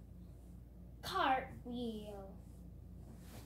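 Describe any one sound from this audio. A young girl exclaims in a high voice close by.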